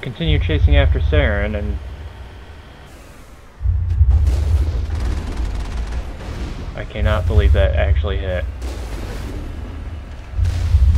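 A vehicle engine rumbles low and heavily.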